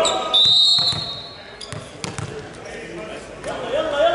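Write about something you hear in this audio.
A volleyball thumps off hands and arms.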